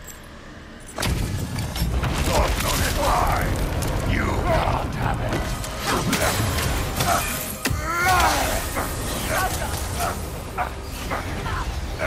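A fierce wind howls and roars.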